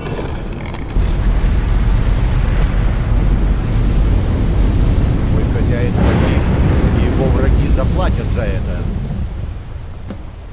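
A magical barrier gives off a deep, steady rumble.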